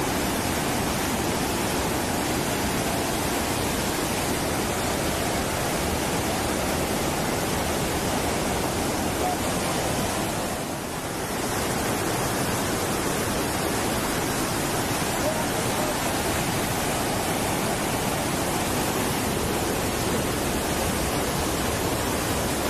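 Rushing water roars steadily.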